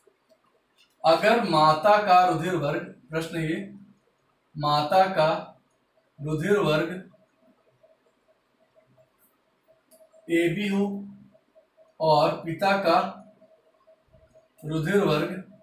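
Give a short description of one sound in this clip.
A man speaks calmly and clearly, close by, in short bursts.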